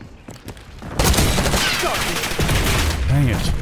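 Gunfire rattles in a rapid burst close by.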